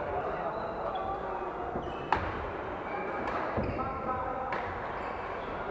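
Voices murmur in a large echoing hall.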